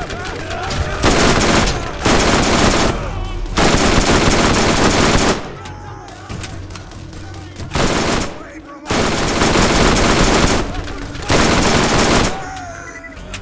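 An automatic gun fires in loud rapid bursts.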